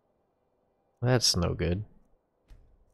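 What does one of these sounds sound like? A man speaks briefly and with animation, close to a microphone.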